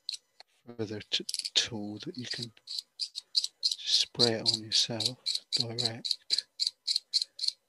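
A small tool taps and scrapes quickly against hard plastic.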